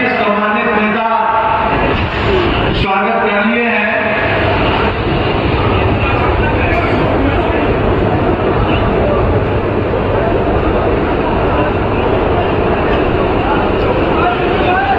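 A large crowd cheers and chatters loudly.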